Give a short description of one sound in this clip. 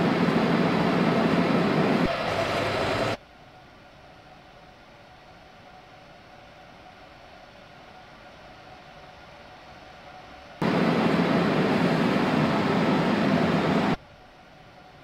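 A train rumbles loudly, heard from inside its cab.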